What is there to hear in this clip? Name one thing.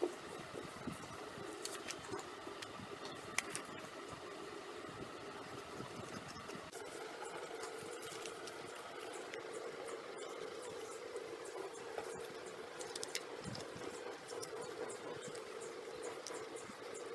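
Hands fold and crease a sheet of paper.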